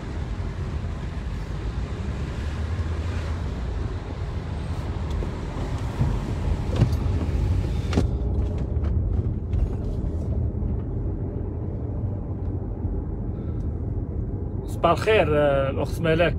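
A car engine hums steadily from inside the car as it drives.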